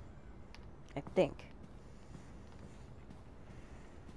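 Footsteps pad softly on a carpet.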